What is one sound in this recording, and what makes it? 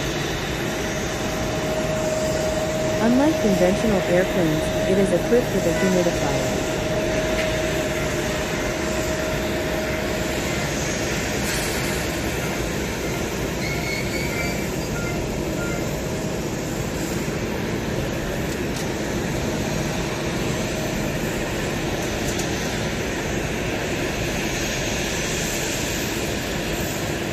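A pushback tug's engine rumbles as it pushes a jet airliner.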